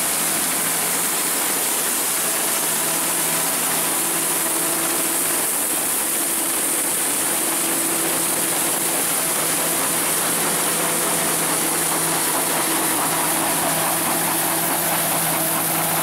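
A combine harvester engine drones steadily close by.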